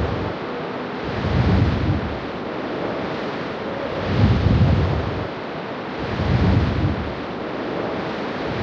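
Wind blows over open water.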